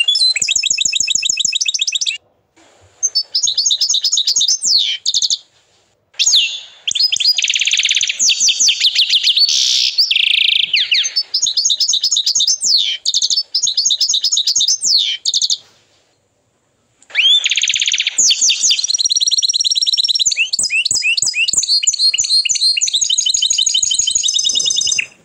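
A canary sings close by in fast, loud trills and chirps, with short pauses.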